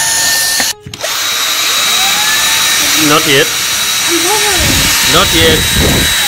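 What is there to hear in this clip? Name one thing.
A cordless drill whines and bores into brick.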